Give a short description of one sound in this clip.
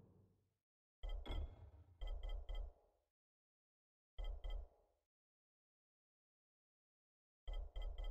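Short chiming menu clicks sound in quick bursts.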